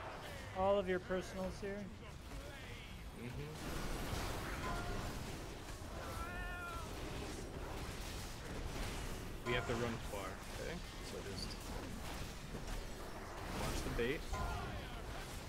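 Magic spells crackle and blast in a fierce fight.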